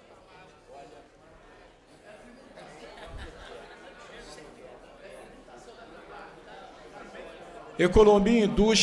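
A crowd murmurs softly in a large hall.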